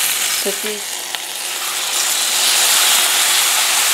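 Liquid pours into a hot pan.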